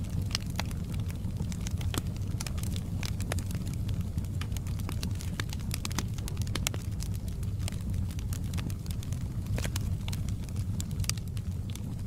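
Flames roar low and steadily.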